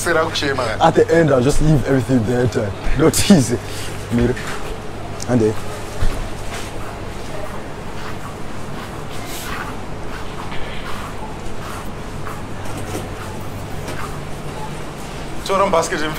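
Footsteps walk across a hard floor.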